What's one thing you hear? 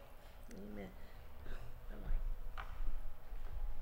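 A woman speaks into a microphone in an echoing hall.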